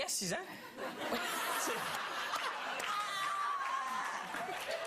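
A middle-aged woman laughs loudly.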